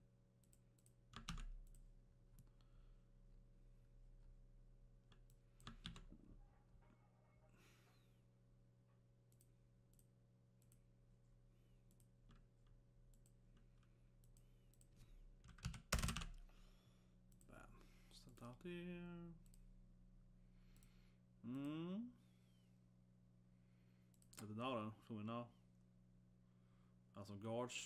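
A man speaks a few quiet words close by.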